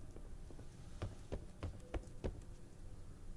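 Footsteps thud on a hard metal floor.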